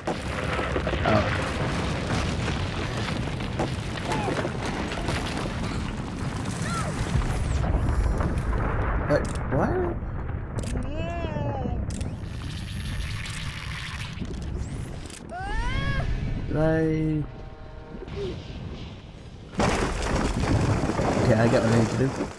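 Stone blocks crumble and fall with a low rumble.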